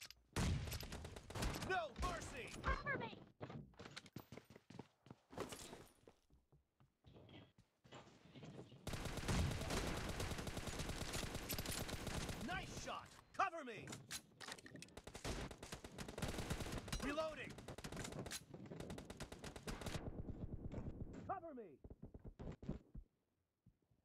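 An automatic rifle fires in bursts.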